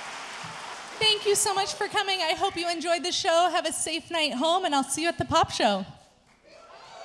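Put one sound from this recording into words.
A children's choir sings together, heard in an echoing hall.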